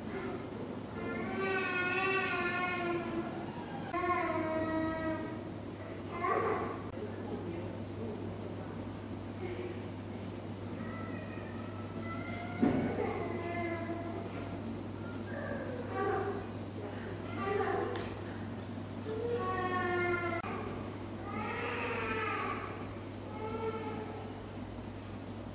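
A young boy talks nearby in a high voice.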